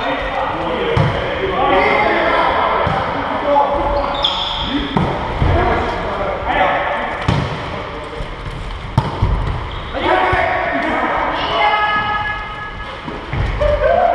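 Men call out and talk loudly, echoing in a large hall.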